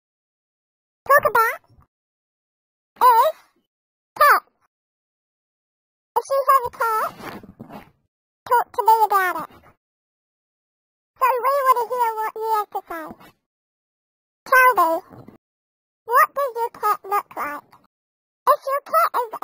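A high-pitched, sped-up cartoon voice chatters in short bursts.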